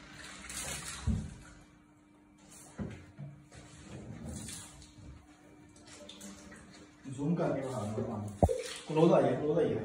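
Water pours and splashes from a jug.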